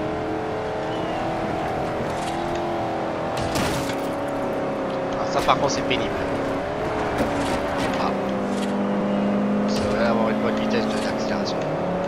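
A car engine roars steadily at high revs.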